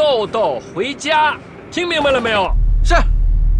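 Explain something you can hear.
A middle-aged man talks on a phone with animation.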